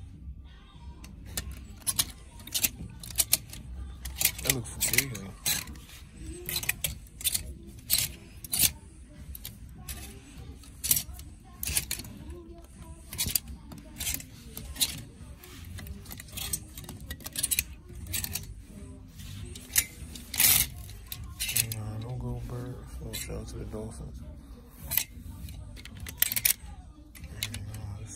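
Plastic clothes hangers click and scrape along a metal rail.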